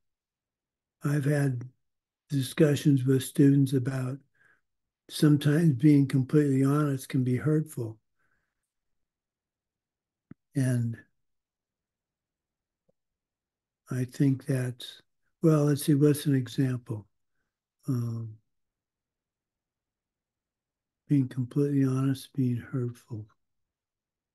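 An older man speaks calmly, in pauses, heard close through a microphone on an online call.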